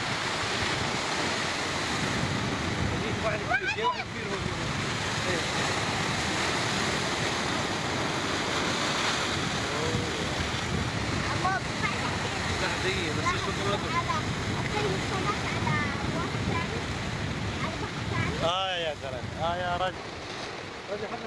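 Waves crash and surge over rocks close by.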